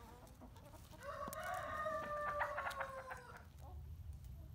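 A goose honks close by.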